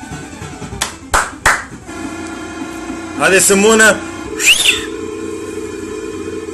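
Chiptune video game music plays steadily through a small speaker.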